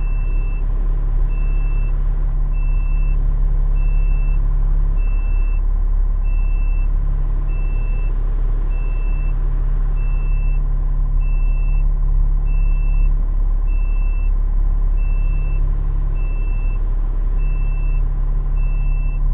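A turn signal ticks in an even rhythm.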